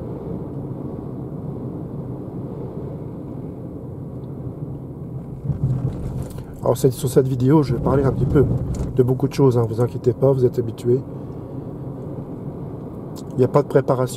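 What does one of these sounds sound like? A car hums steadily from inside as it drives along a road.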